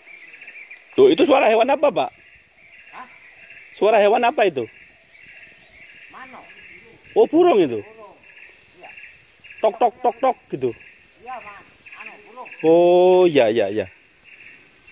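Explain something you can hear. A man calls out from across the water.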